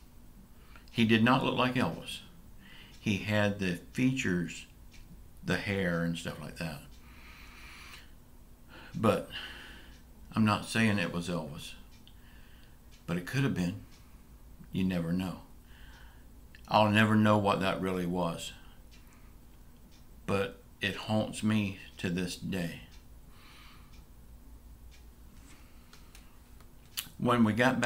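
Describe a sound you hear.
A middle-aged man talks calmly into a nearby microphone, in short bursts with pauses.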